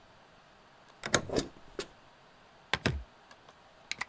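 A stamp thuds down on paper a few times.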